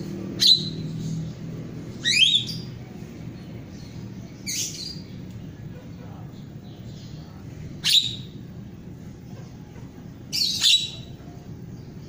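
A small caged bird chirps in short, sharp bursts close by.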